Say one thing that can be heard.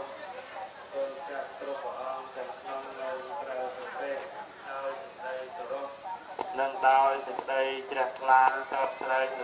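A man speaks steadily into a microphone, chanting in a measured voice.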